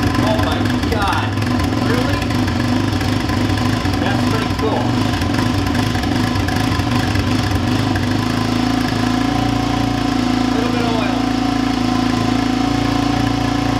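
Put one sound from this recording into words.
A quad bike engine idles roughly, then settles into a steadier hum.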